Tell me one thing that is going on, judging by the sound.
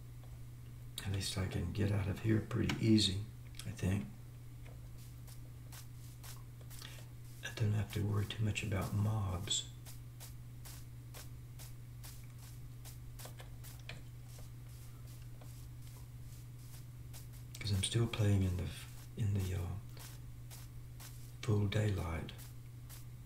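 An elderly man talks calmly into a close microphone, in short bursts with pauses.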